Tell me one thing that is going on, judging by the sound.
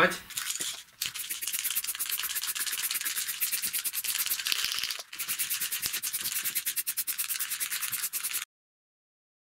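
A spray can hisses in short bursts.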